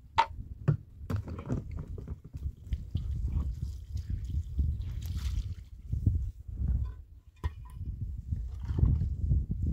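Wet cloth sloshes and squelches in a basin of water.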